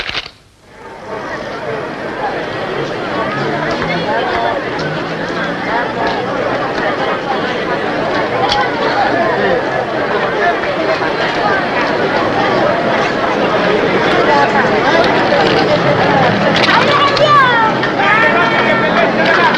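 A crowd chatters busily outdoors.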